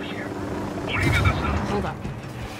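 Gunfire bursts out near a helicopter.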